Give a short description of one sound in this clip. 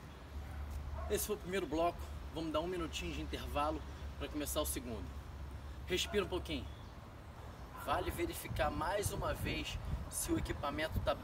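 A young man talks to the listener with animation, close by.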